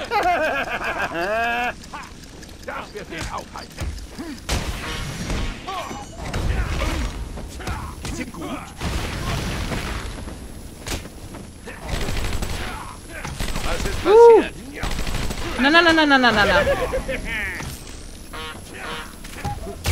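Punches and kicks thud in a brawl.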